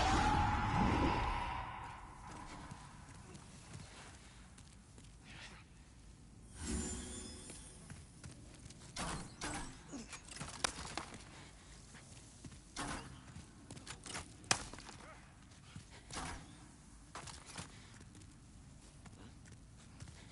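A sword swings through the air with sharp swishes.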